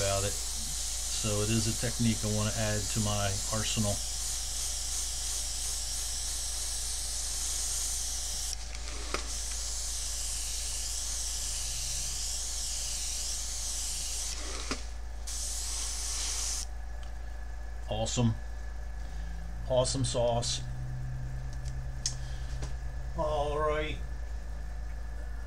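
A middle-aged man talks calmly into a nearby microphone.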